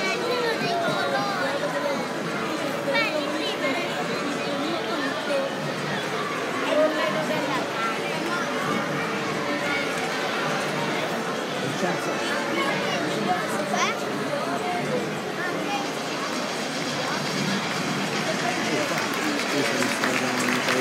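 A large crowd chatters and murmurs in a big echoing hall.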